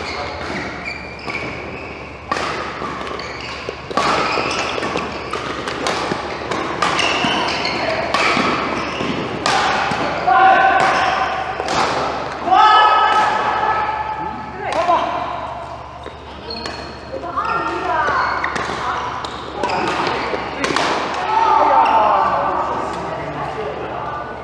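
Sports shoes squeak sharply on the court floor.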